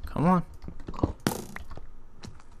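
A pickaxe chips at stone blocks.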